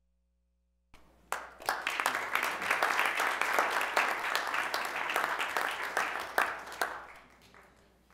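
A crowd applauds in an echoing hall.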